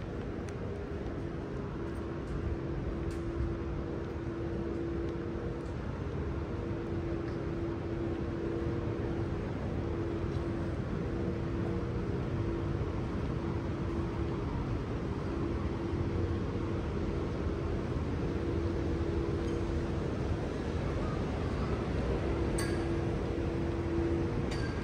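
A quiet city street hums softly in the background.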